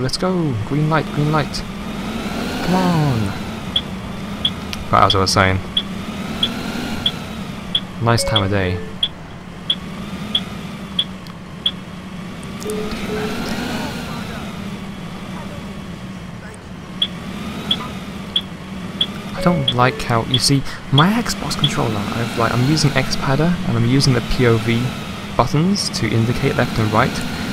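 A bus engine drones steadily, rising and falling in pitch as it drives.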